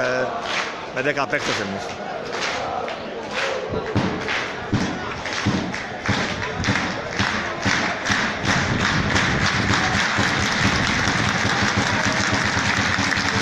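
A crowd of fans claps in rhythm close by.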